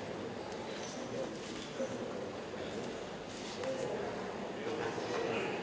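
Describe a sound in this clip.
A crowd of men and women chatter softly in a room.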